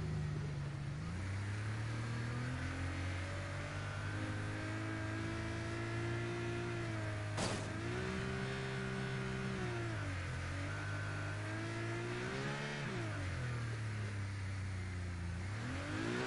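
A sports car engine roars, rising and falling in pitch as it shifts gears.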